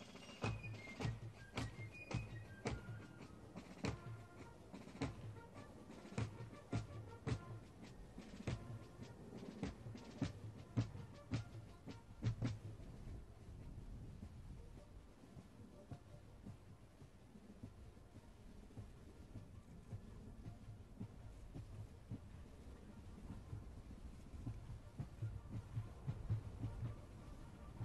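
A military brass band plays a march outdoors.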